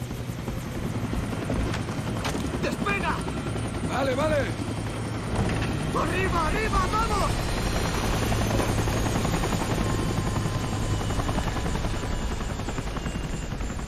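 A helicopter engine starts up and hums steadily.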